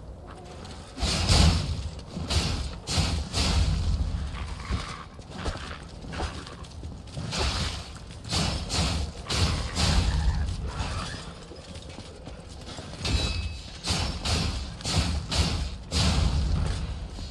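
A blade slashes and strikes hard, again and again.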